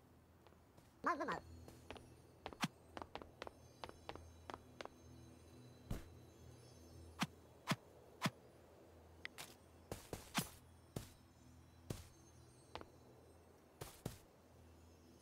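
Game footsteps tap lightly on blocks, in an irregular patter.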